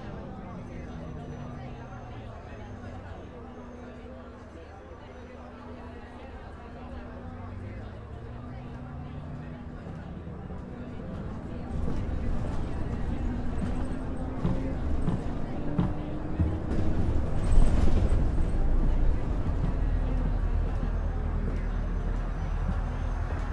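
A bus engine hums and whines as the bus drives along.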